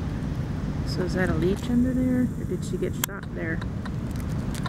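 An elephant makes short, high squeaky calls close by.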